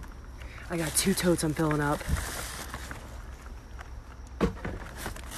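Plastic bags rustle and crinkle close by.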